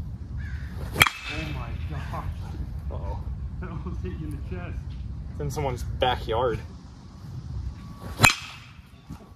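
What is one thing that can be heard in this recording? A baseball bat cracks sharply against a ball.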